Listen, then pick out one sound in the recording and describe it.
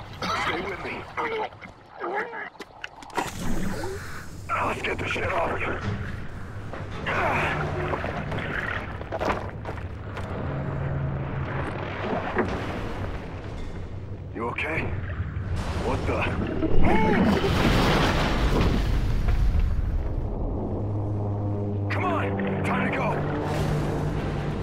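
Air bubbles gurgle and rush underwater.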